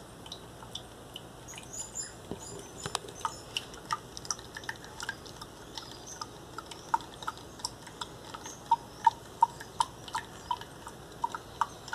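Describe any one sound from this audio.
Juice drips and trickles through a strainer into a glass.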